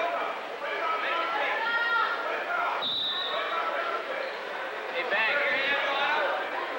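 A crowd of spectators shouts and calls out in a large echoing hall.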